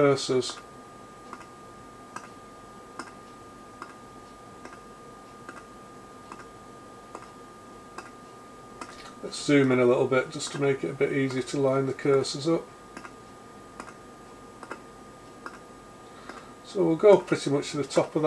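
A knob clicks softly as it is turned.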